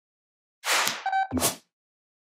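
A bright electronic chime rings briefly.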